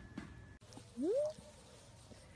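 A puppy yelps with a short rising whine, close by.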